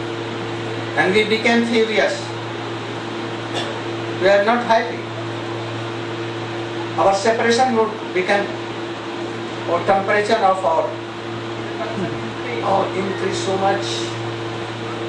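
An elderly man speaks calmly through a microphone, with pauses.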